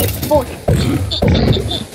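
A pig grunts nearby.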